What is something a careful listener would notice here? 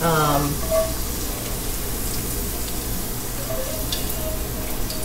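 A metal spatula scrapes food out of a pan.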